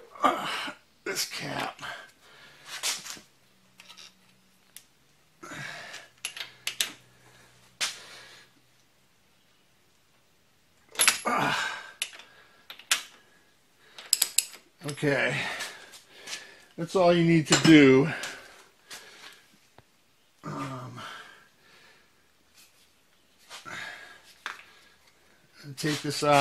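A small metal tool clicks and scrapes against metal parts.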